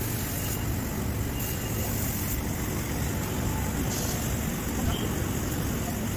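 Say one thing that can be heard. A laser cutter hisses as it cuts through metal sheet.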